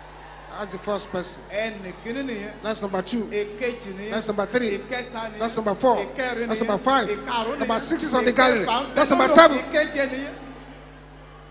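A large crowd of men and women pray aloud fervently, shouting together in a big echoing hall.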